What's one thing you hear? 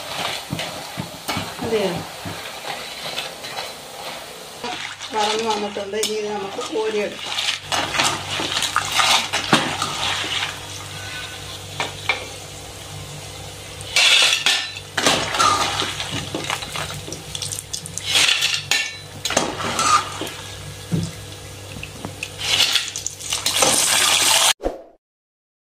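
A metal slotted spoon scrapes and clinks against a pan.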